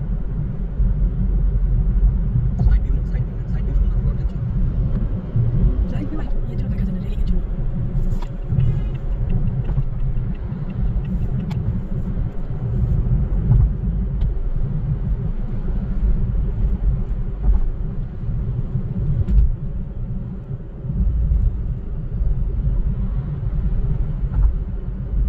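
A car cruises at speed, with a low rumble of road noise heard from inside the car.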